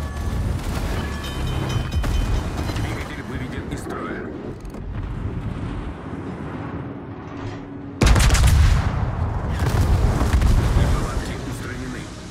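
Heavy naval guns fire in loud booming salvos.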